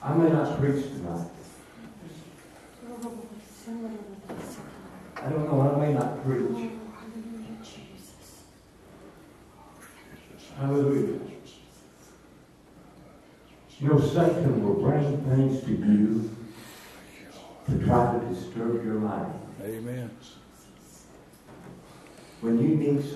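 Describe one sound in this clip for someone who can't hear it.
An elderly man speaks through a microphone in bursts, with pauses, in an echoing room.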